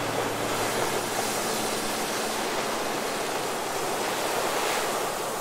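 Foaming water washes up over the pebbles.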